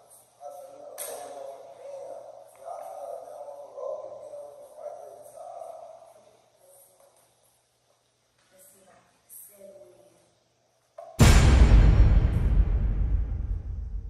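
Billiard balls clack together on a pool table.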